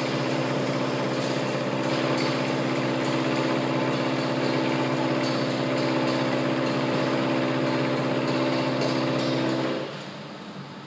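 A milling machine hums and whirs steadily, then winds down.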